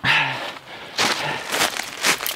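Dry leaves crunch and rustle underfoot.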